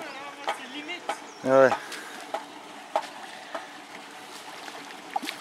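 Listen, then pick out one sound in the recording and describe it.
A shallow river flows gently with a soft, steady murmur.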